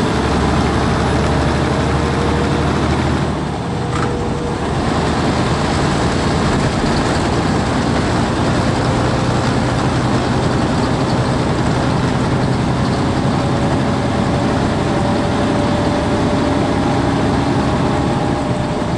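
A truck's engine hums steadily from inside the cab.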